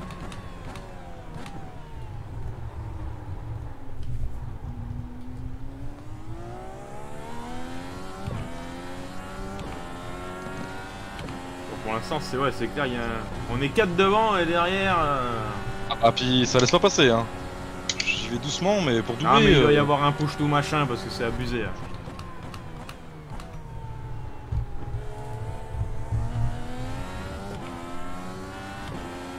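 A racing car engine whines and revs up and down through the gears.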